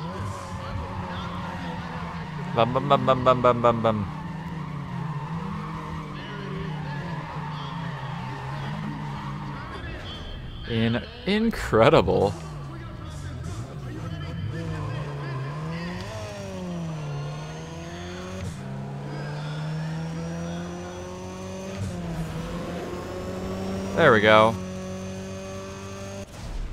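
A car engine roars and revs up and down through gear shifts.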